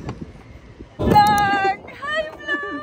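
A young woman cries out happily.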